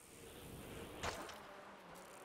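A bicycle lands with a thud.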